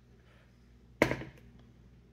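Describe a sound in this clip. A plastic hard hat knocks against a table.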